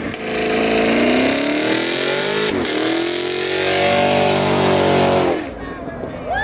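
A car engine revs hard and roars.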